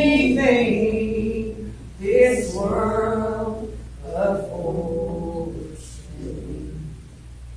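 A small group of people sings together in a reverberant hall.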